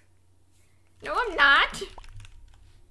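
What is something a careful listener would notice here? A young woman exclaims loudly into a microphone in a rising, sing-song voice.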